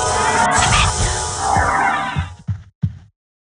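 A magic spell bursts with a crackling whoosh.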